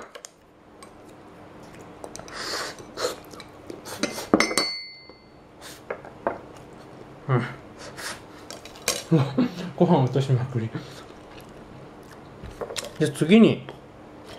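Chopsticks click against dishes.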